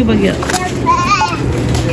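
A shopping cart rattles as it rolls.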